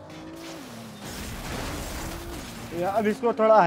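A car crashes into something with a crunch and scattering debris.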